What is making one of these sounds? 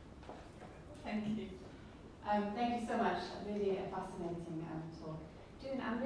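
A middle-aged woman speaks calmly through a microphone.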